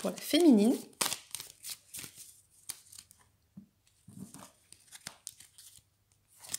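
Cards shuffle and slap softly onto a cloth-covered table.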